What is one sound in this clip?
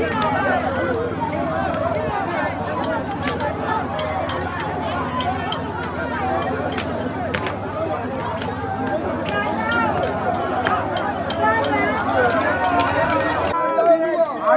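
A large crowd chatters and shouts outdoors.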